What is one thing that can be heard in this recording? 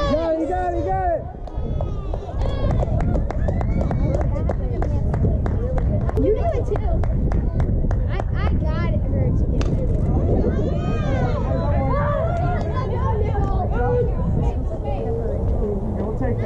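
Young girls shout and cheer across an open field.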